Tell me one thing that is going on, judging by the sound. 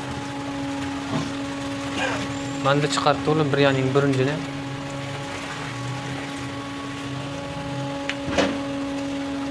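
A metal strainer scrapes and clinks against a metal pot.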